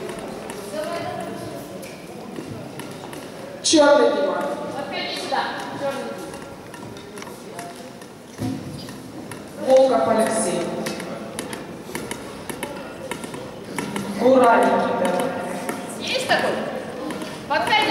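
Young children take turns speaking into a microphone in a large echoing hall.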